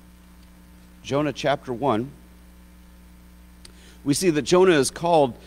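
A middle-aged man speaks slowly and deliberately into a microphone.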